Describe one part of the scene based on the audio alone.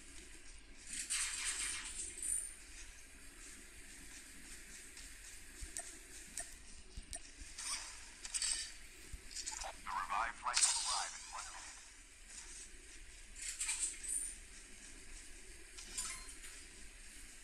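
Gear is picked up with short rustling clatters.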